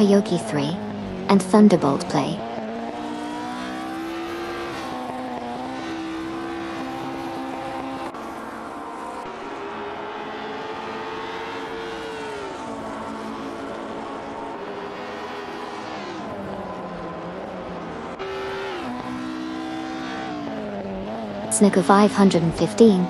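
A racing car engine drones steadily, rising and falling in pitch as it shifts gears.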